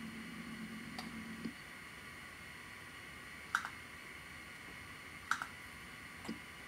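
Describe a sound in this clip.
A short computer click sounds a few times.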